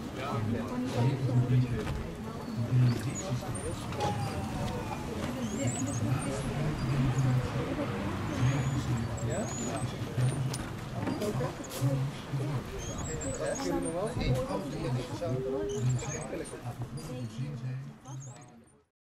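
A wooden whirligig clatters rhythmically as its sails turn in the breeze.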